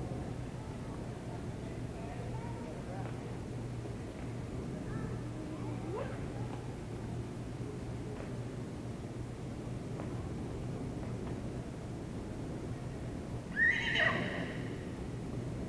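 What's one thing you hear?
A horse's hooves thud softly on loose dirt as it trots.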